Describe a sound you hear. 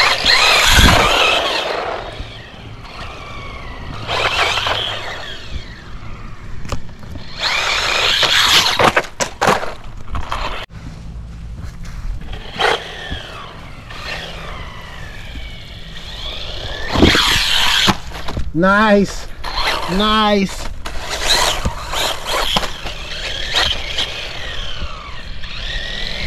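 A toy car's electric motor whines, revving up and down.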